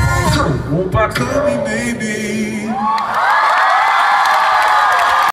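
Men sing together through loud speakers in a large echoing arena.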